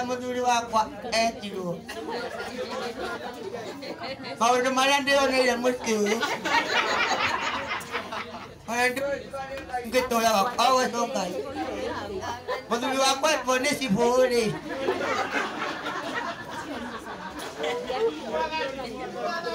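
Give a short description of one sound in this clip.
A man sings loudly through a microphone and loudspeaker.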